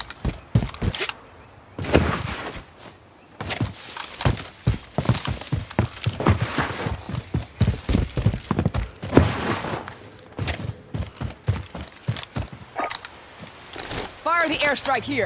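Footsteps crunch quickly over gravel and rock.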